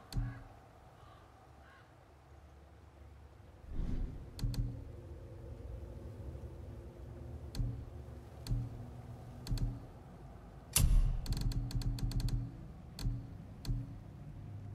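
Soft interface clicks sound as menu selections change.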